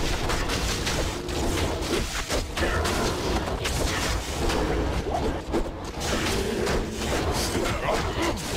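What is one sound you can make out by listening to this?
Spells crackle and burst in a fast fantasy battle.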